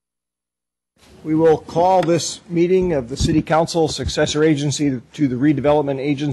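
An older man speaks calmly into a microphone.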